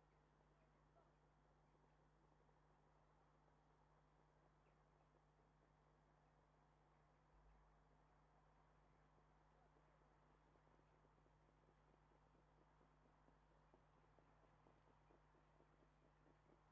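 Horses' hooves thud faintly on a dirt track, drawing closer.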